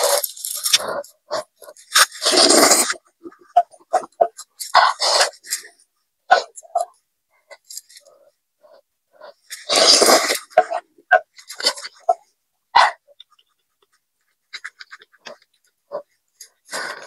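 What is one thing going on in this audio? A young woman slurps noodles loudly, close to the microphone.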